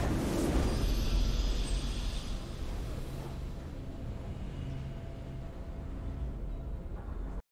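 A triumphant game fanfare plays softly.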